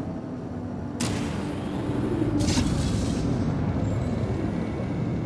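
A deep whoosh rushes past as a craft flies out into the open.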